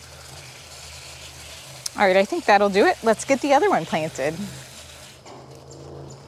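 Water sprays softly from a garden hose.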